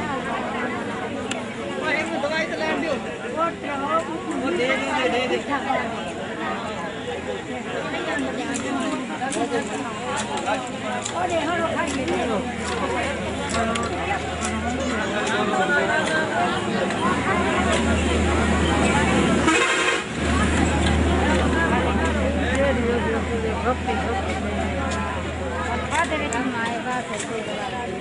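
A crowd of women and men chatters loudly all around, close by.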